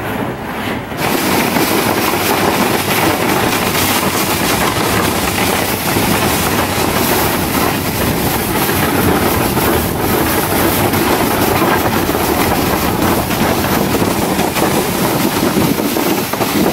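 A sled scrapes and hisses over snow.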